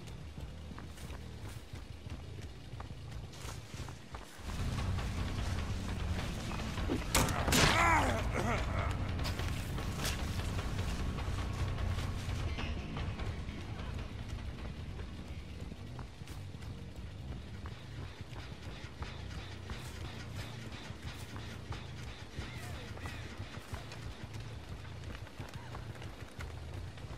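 Heavy footsteps tread through tall dry grass and stalks.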